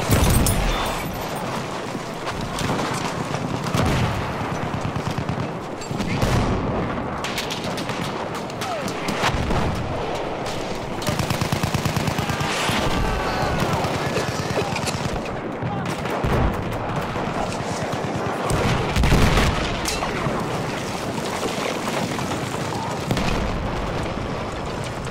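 Gunshots crack in rapid bursts close by.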